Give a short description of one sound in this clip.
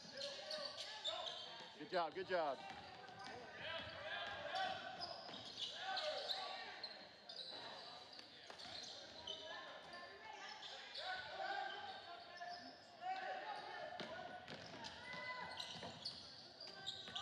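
Spectators in a large echoing gym chatter and call out.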